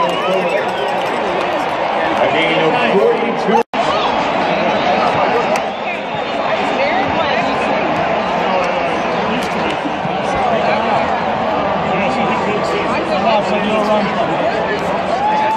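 Many people shout and chatter close by.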